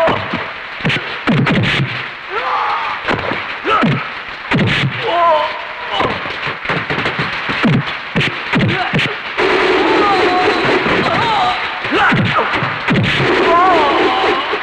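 Men grunt and shout while fighting.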